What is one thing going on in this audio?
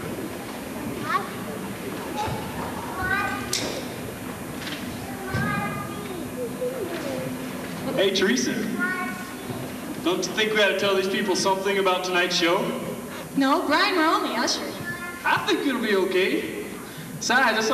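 A woman sings into a microphone in a large echoing hall.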